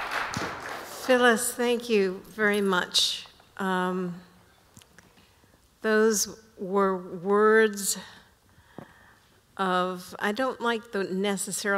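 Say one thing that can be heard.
An older woman speaks calmly into a microphone, pausing between phrases.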